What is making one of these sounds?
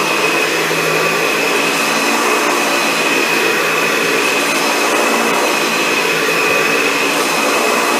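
A vacuum cleaner brushes back and forth over a rug.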